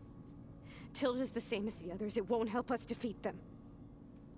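A young woman speaks softly and with feeling, close by.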